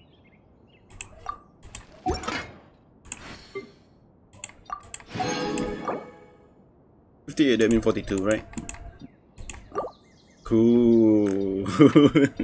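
Short game menu clicks and chimes sound.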